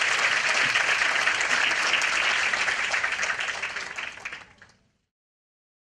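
A large audience applauds in a hall, then the clapping fades out.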